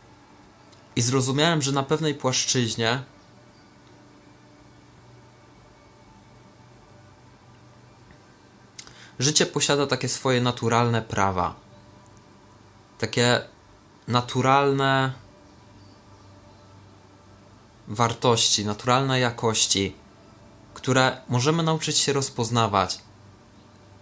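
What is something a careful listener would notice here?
A young man speaks calmly up close, in short bursts with pauses.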